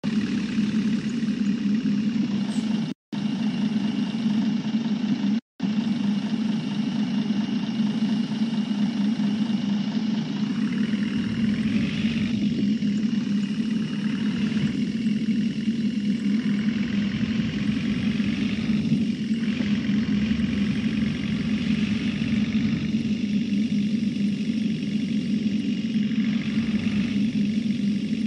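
A bus engine hums low and steadily.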